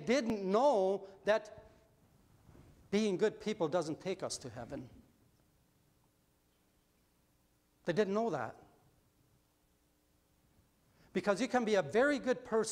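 A middle-aged man speaks with animation through a microphone in an echoing hall, pausing between phrases.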